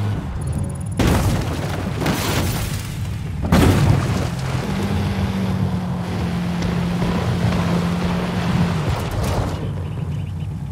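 A car crashes through bushes and over rough ground with loud thuds and rustling.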